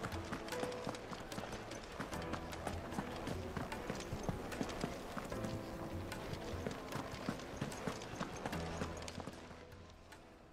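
Quick footsteps run across a stone floor.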